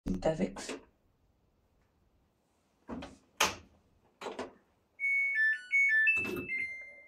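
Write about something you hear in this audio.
Buttons on a washing machine click as they are pressed.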